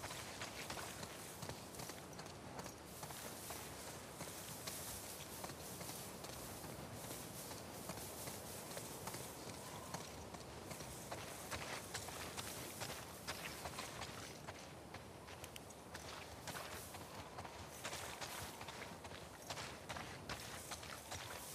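Footsteps rustle through tall grass at a quick pace.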